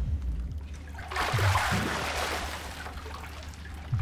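Ice cubes rattle and slosh in water.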